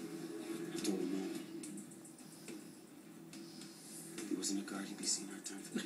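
A man speaks in a low voice through a television speaker.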